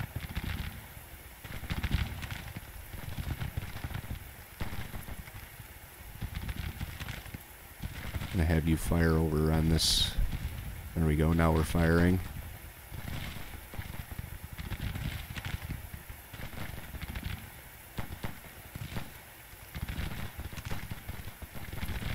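Cannons boom and muskets crackle in a distant battle.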